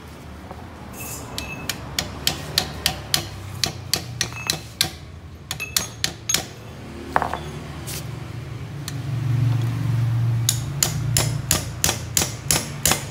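A hammer strikes metal in quick, ringing blows.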